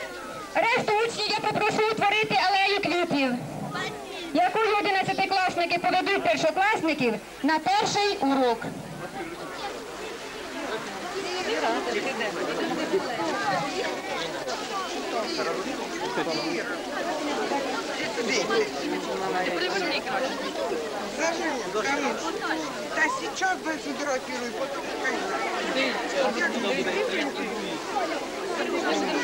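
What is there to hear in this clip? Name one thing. A crowd of people chatter and talk outdoors.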